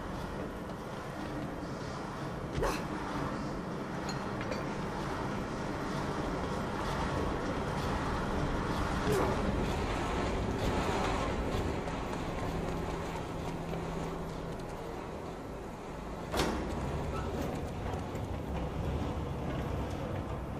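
Footsteps clank on metal walkways and stairs.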